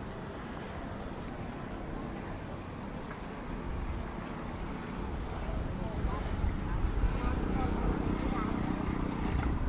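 Distant voices of a crowd murmur outdoors.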